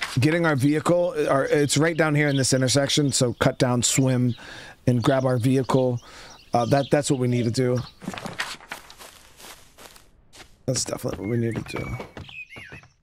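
A man talks with animation into a close microphone.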